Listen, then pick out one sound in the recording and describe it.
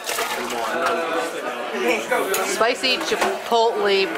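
Ice rattles in a metal cocktail shaker.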